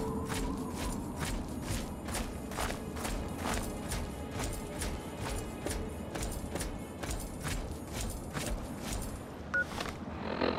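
Footsteps crunch steadily through dry grass.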